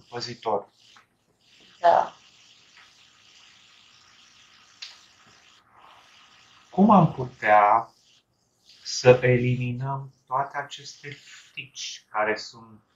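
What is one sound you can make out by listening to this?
A young man talks casually over an online call.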